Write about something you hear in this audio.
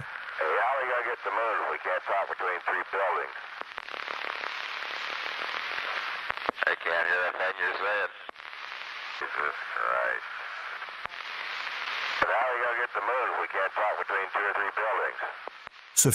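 A man speaks amid crackling noise.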